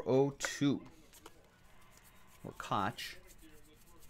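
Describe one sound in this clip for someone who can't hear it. Trading cards shuffle and flick in hands.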